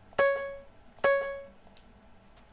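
Short bright chimes ring out twice from a video game.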